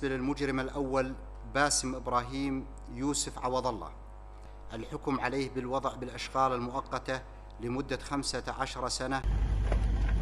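A man reads out calmly into microphones.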